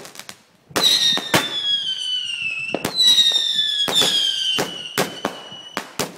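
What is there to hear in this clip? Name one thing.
Fireworks bang and crackle.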